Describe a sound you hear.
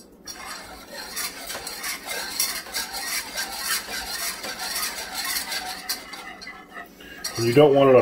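A spoon stirs and scrapes inside a small metal pot.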